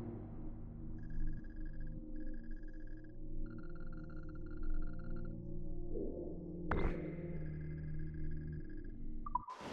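Soft electronic tones beep steadily.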